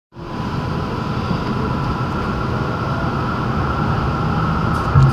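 A vehicle's engine rumbles steadily from inside as it rolls along slowly.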